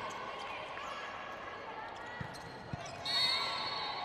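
A volleyball thuds off a hand.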